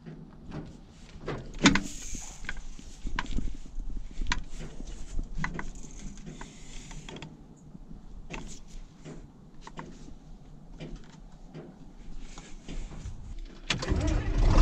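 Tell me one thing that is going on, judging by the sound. Metal levers click and clank as a hand adjusts them.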